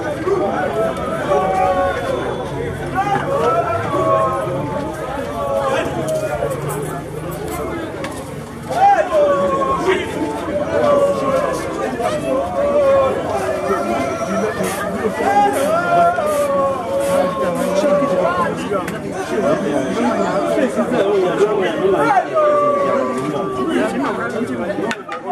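A group of men and women sing together nearby.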